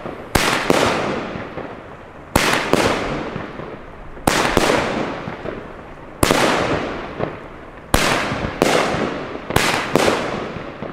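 Firework sparks crackle and fizz after each burst.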